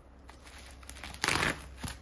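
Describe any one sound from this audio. Scissors snip through bubble wrap.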